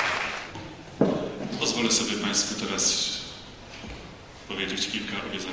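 A man reads aloud calmly through a microphone and loudspeakers in an echoing hall.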